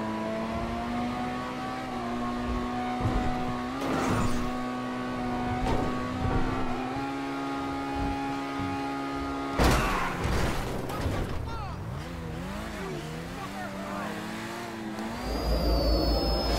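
A car engine hums steadily and revs as the car speeds along.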